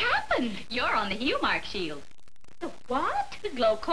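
Another woman answers in conversation, close by.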